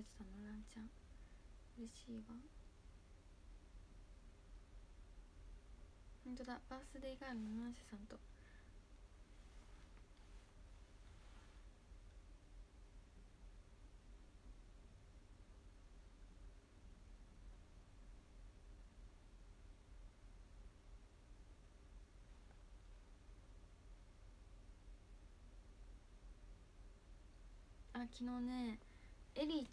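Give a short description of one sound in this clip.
A young woman speaks softly and close by, in short bursts with long pauses.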